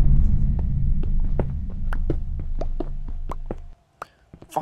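A pickaxe taps rapidly against stone, breaking blocks.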